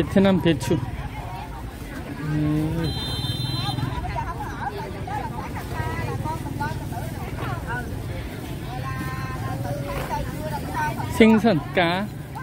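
A woman speaks loudly and with animation close by.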